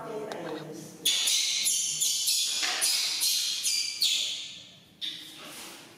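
A baby macaque squeals shrilly.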